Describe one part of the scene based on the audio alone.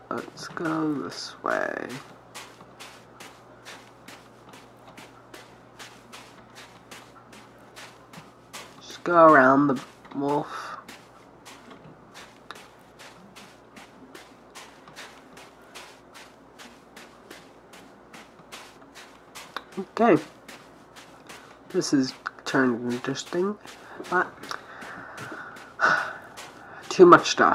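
Footsteps crunch quickly and steadily through snow.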